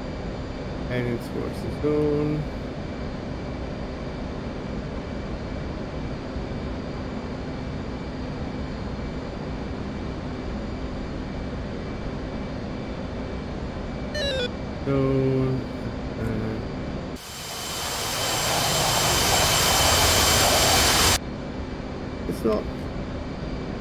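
A young man speaks briefly and calmly into a microphone.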